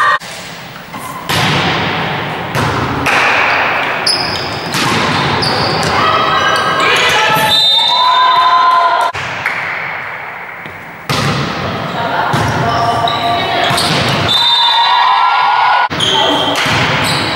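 Young women shout and call out across the court.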